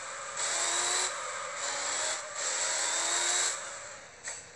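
Tyres screech loudly as a car drifts.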